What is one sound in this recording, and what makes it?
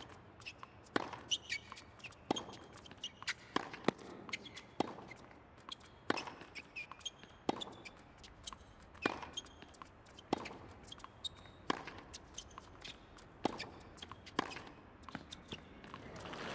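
Tennis balls are struck back and forth with sharp pops.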